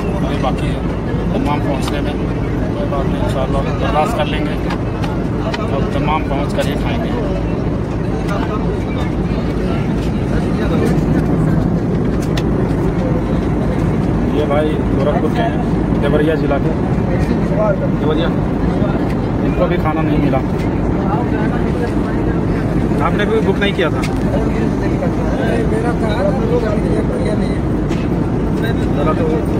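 An aircraft cabin hums with a low, steady roar.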